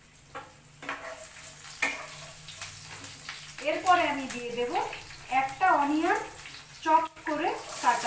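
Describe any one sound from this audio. A spatula scrapes and stirs in a frying pan.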